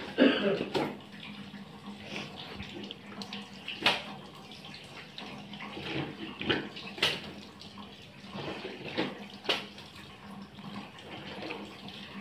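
Wet cloth slaps and drips as it is wrung and lifted.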